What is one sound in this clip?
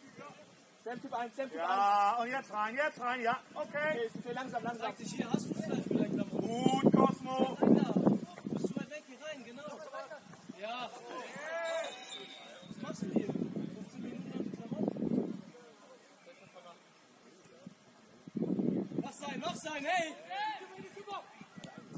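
Young men shout to one another across an open field outdoors.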